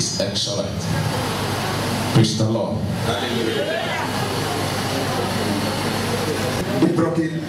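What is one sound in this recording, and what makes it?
A man speaks forcefully into a microphone, heard through loudspeakers in an echoing hall.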